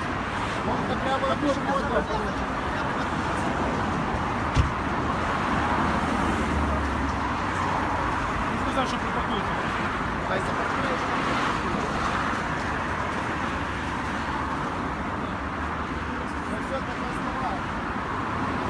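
Traffic hums along a road.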